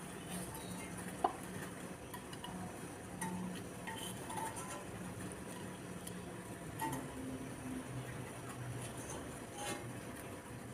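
A metal spoon scrapes and clinks in a pan.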